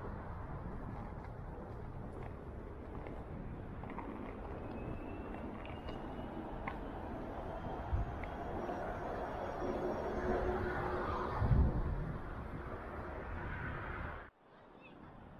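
Traffic hums along a wide road nearby.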